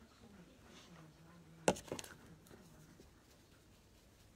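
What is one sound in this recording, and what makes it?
A soft brush sweeps lightly over fingernails.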